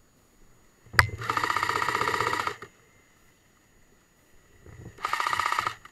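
An airsoft rifle fires rapid bursts close by.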